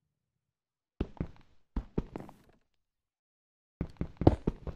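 Pickaxe blows crack against stone.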